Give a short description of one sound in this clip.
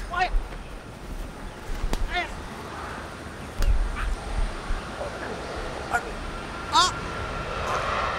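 Two men scuffle and thrash in tall grass.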